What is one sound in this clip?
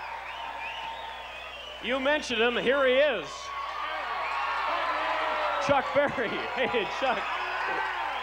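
A crowd cheers and whistles.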